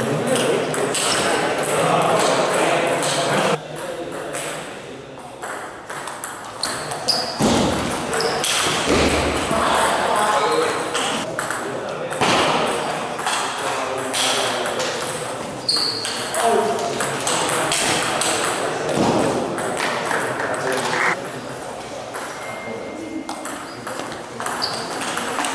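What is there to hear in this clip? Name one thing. Sneakers squeak and shuffle on the floor.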